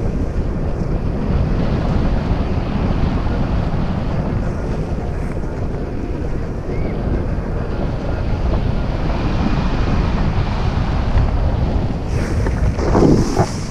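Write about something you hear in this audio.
Strong wind rushes and buffets loudly against a microphone throughout.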